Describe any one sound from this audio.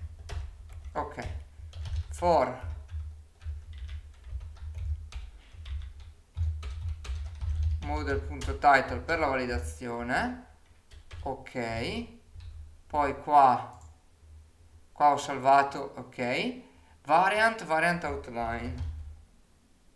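A young man speaks calmly and close to a microphone, in short bursts.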